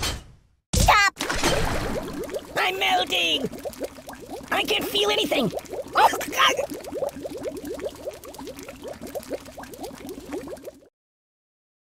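Liquid bubbles and gurgles inside a tank.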